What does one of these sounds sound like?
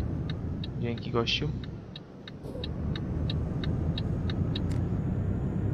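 A turn signal ticks rhythmically, then stops.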